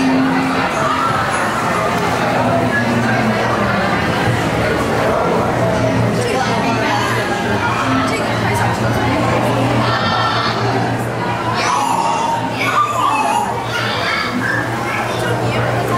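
A crowd murmurs and chatters nearby.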